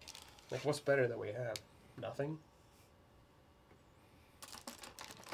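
A plastic wrapper crinkles as it is handled.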